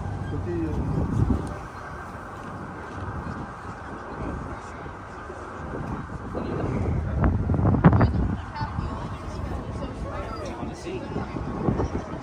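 A crowd of adults chatters nearby.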